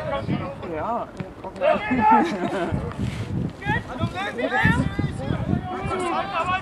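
Young men shout excitedly across an open field.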